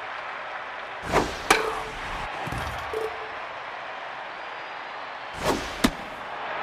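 A baseball whooshes through the air.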